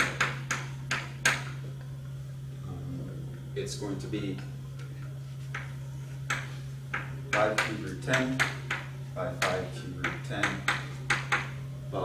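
Chalk taps and scrapes on a blackboard in short bursts.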